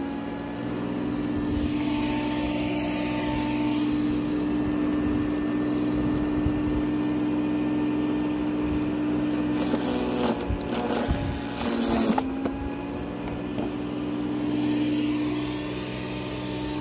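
A garden shredder motor hums steadily.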